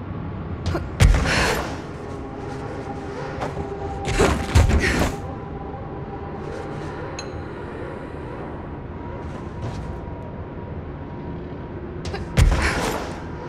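A heavy thud and whoosh sound as a figure leaps and lands.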